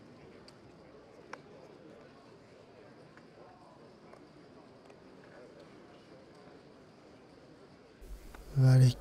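A crowd murmurs softly in a large room.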